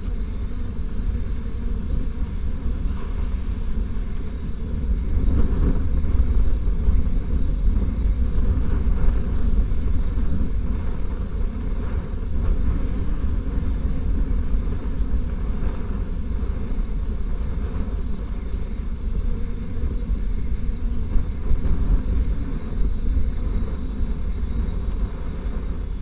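Bicycle tyres hum on a smooth path.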